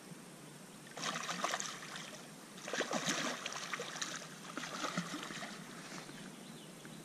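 A hooked fish thrashes and splashes at the water's surface.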